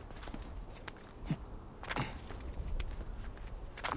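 Hands scrape and grip stone while climbing.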